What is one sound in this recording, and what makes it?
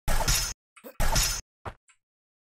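A short whooshing game sound plays as a character jumps.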